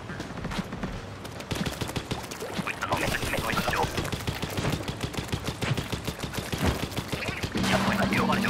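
A toy-like water gun fires rapid splattering shots.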